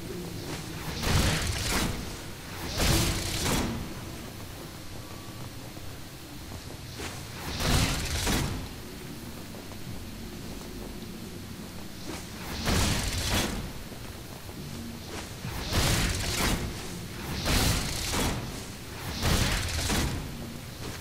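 Fiery blasts whoosh and roar in short bursts.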